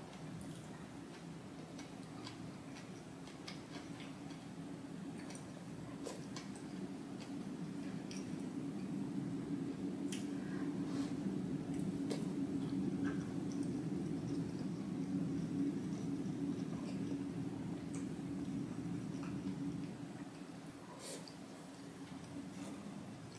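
A young woman chews food wetly, close up.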